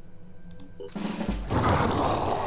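A fiery blast roars loudly.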